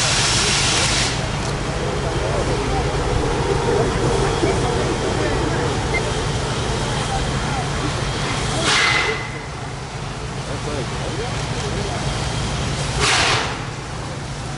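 A steam locomotive lets out loud hissing bursts of steam.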